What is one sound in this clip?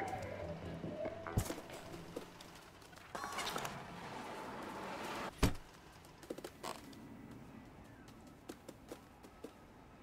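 A cat's paws patter softly on the ground.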